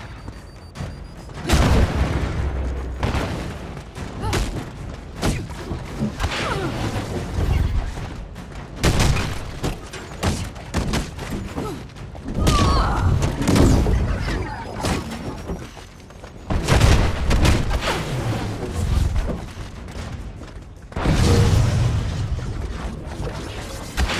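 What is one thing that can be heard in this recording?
Energy blasts crackle and whoosh.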